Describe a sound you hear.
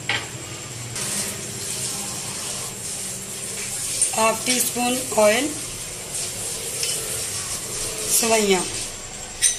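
Oil sizzles softly in a hot pan.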